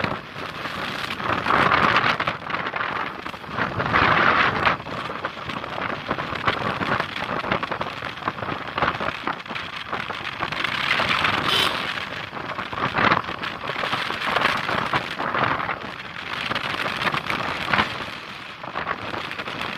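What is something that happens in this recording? Wind rushes and buffets loudly outdoors.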